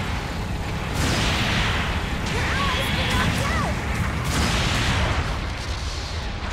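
A large explosion booms and roars.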